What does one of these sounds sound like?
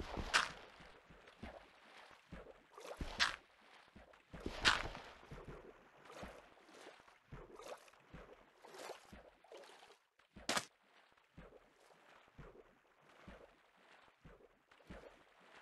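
Footsteps splash through shallow water at a steady walking pace.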